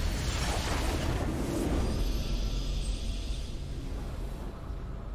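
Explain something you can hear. A triumphant game victory fanfare swells and fades.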